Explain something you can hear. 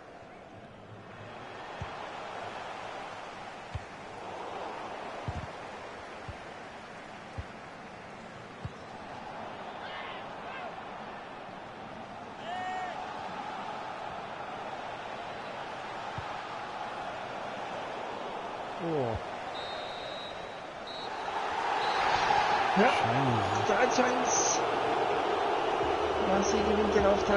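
A large stadium crowd cheers and roars steadily, swelling louder near the end.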